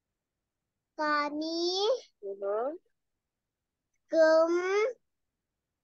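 A young girl reads out words slowly and loudly over an online call.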